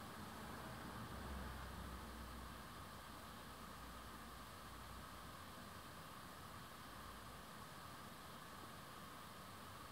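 Radio static hisses and crackles steadily as a radio is tuned between stations.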